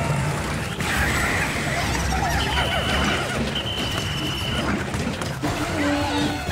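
Many small creatures squeak and cry out in a busy fight.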